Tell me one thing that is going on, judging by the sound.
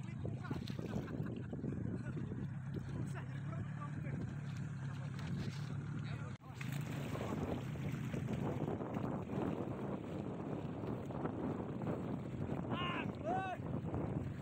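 Small waves slosh and lap on open water.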